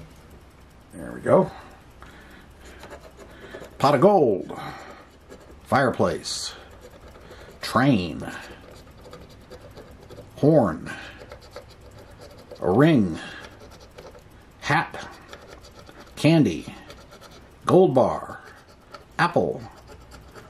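A plastic scratcher scrapes a scratch-off lottery ticket in short strokes.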